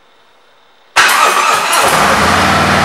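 A motorcycle engine cranks and starts up.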